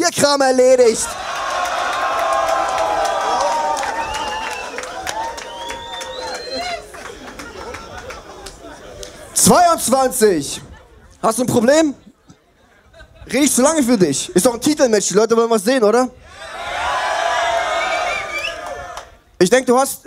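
A crowd cheers and shouts.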